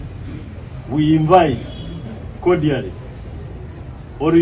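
A man speaks calmly into microphones.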